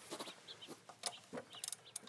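A ratchet wrench clicks rapidly as it turns a bolt.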